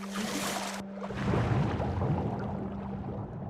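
A muffled underwater rumble swells.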